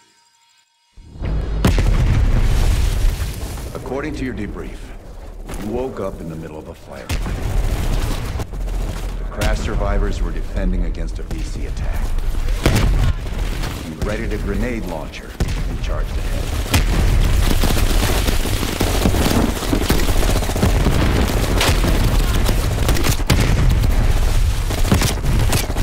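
Explosions rumble deeply in the distance.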